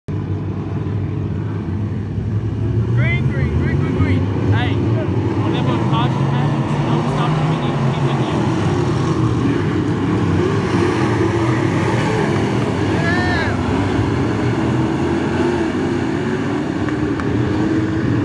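Race car engines roar loudly around a dirt track outdoors.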